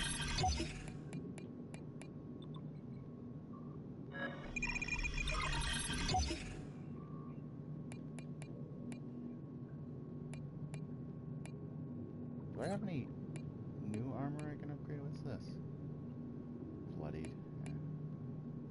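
Short electronic menu clicks tick as game options are browsed.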